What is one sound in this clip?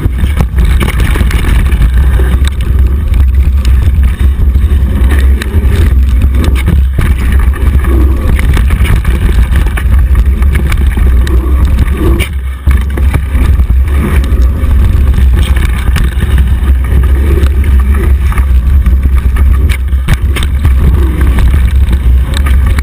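Wind roars loudly over a microphone.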